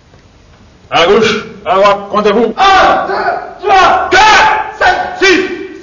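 A group of young men shout together in unison.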